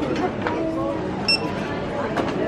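A barcode scanner beeps.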